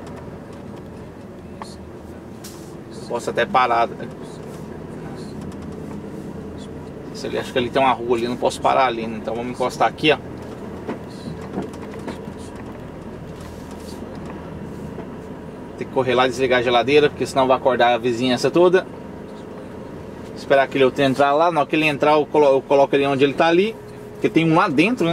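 A large vehicle's engine hums steadily from inside the cab.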